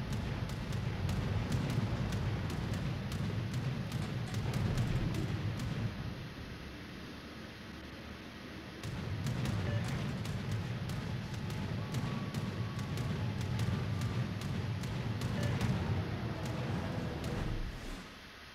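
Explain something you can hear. Anti-aircraft guns fire in quick, sharp bursts.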